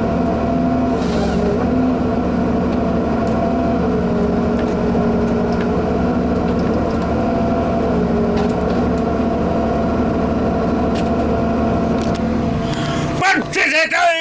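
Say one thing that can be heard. A heavy machine's engine drones steadily.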